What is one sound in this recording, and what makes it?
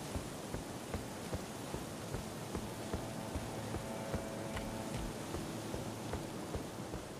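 Quick footsteps thud on stone.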